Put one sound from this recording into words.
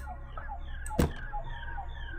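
A wooden door swings shut with a knock.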